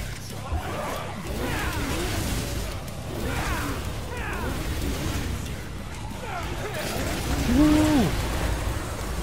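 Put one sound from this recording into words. A creature screeches and roars.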